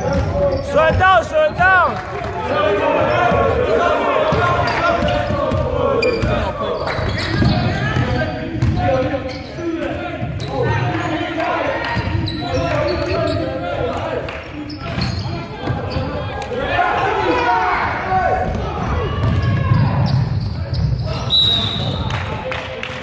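Young men shout and call out across an echoing hall.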